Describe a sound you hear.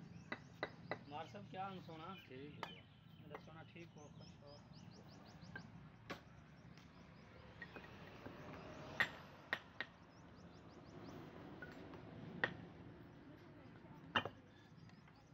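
Bricks clack against each other as they are set down.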